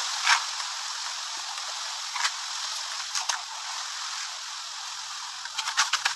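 A trowel scrapes mortar in a metal bucket.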